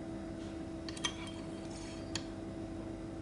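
A plastic cuvette clicks and scrapes as it slides into a metal holder.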